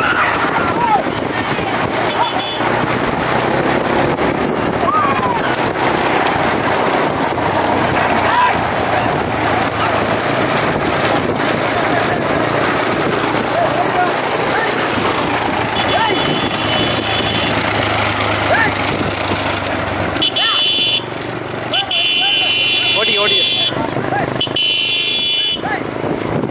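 Wooden-spoked cart wheels rumble over a paved road.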